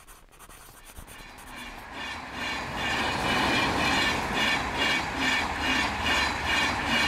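A train rushes past close by.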